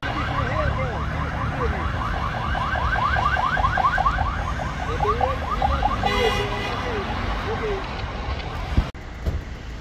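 Traffic rumbles along a nearby road.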